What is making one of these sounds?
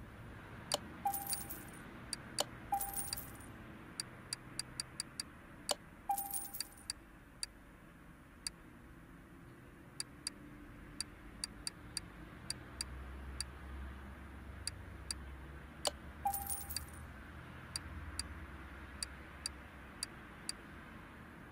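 Short interface ticks sound as a menu selection moves from item to item.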